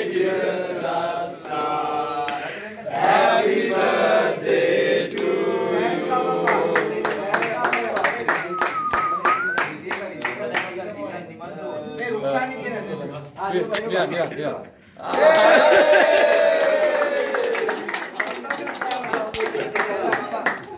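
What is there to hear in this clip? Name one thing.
A group of men sing together loudly nearby.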